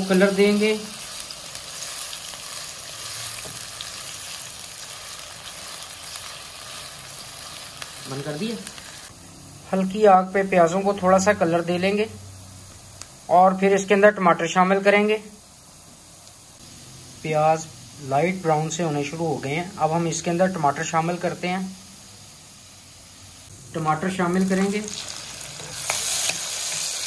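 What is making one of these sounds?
A spatula scrapes and stirs around a metal pan.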